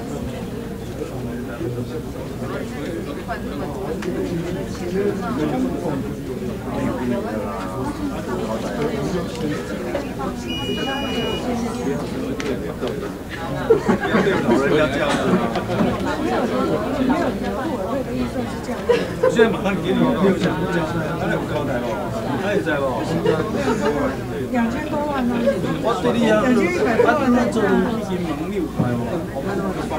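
Many men and women chatter at once in a large room.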